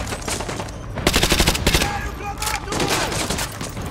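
A rifle fires in short bursts, echoing in a large hall.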